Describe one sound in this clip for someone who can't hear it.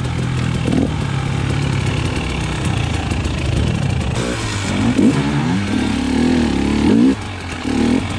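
Other dirt bike engines idle and rev nearby.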